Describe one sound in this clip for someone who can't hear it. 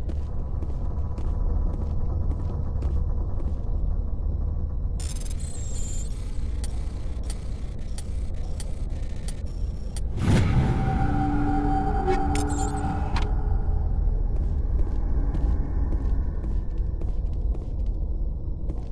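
A low steady hum drones throughout.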